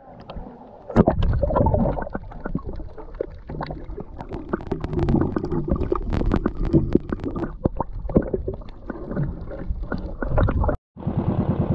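Water gurgles and bubbles, heard underwater.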